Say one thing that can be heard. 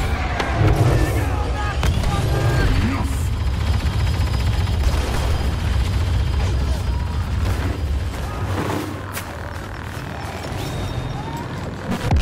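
A lightsaber hums and swooshes.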